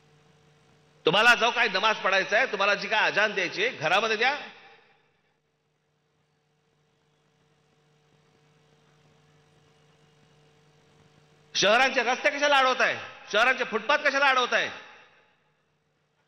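A middle-aged man speaks forcefully into a microphone over loudspeakers.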